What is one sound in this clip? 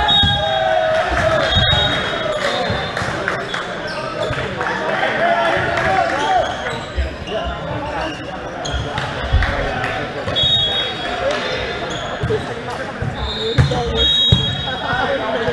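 Players call out and chatter nearby.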